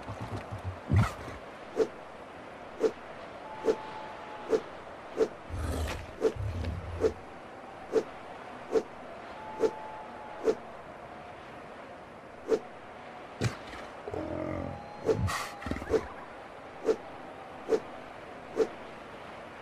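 Short game interface clicks sound again and again at a steady pace.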